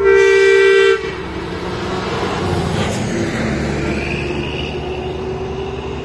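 Another truck engine grows louder as the truck approaches.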